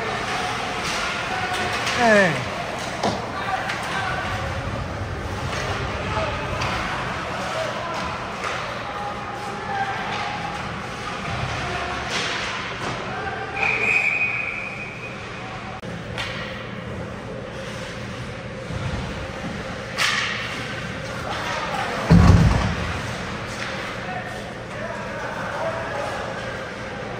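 Ice skates scrape and carve across an ice rink in a large echoing hall.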